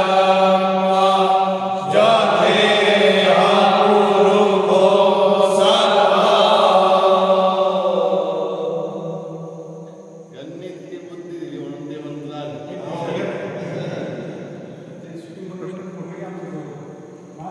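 Several men sing loudly together close by.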